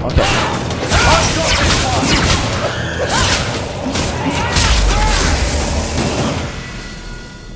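Magic blasts burst with loud whooshes.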